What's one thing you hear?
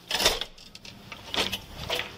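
A door swings open and its metal handle clanks.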